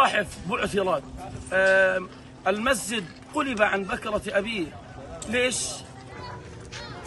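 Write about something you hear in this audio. A young man speaks loudly and with agitation close by.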